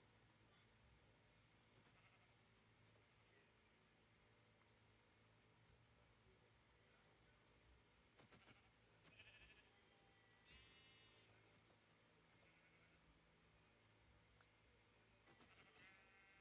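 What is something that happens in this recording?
Footsteps tap softly on grass.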